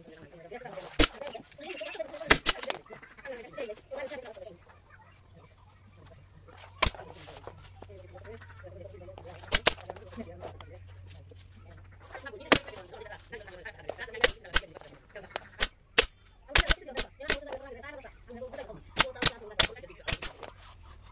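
A pneumatic staple gun fires sharp, loud shots, one at a time.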